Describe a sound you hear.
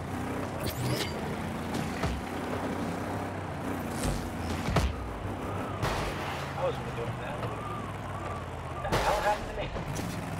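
A ball is struck with sharp thuds.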